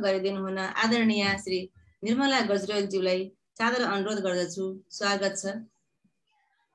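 A middle-aged woman speaks calmly and warmly over an online call.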